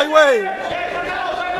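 A man nearby yells loudly.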